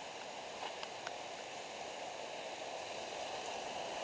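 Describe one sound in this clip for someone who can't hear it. A stream rushes nearby, growing louder.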